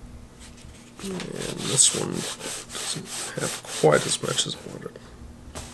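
Stiff paper rustles and creases under hands.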